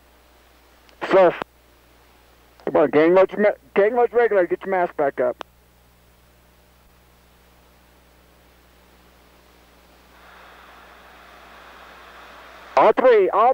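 A man speaks in short bursts through a helmet microphone, heard close and somewhat muffled.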